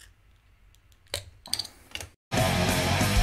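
A bottle cap is pried off with a short metallic pop.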